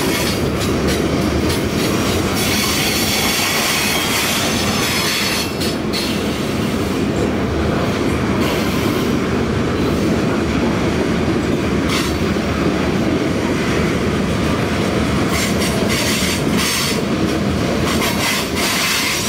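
A long freight train rumbles steadily past on the tracks.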